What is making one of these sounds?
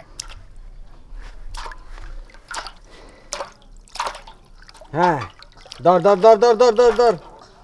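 Water splashes in a metal bowl as a small hand stirs it.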